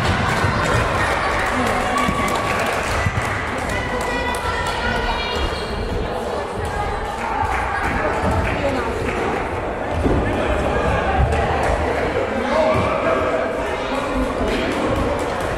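A ball bounces on a wooden floor.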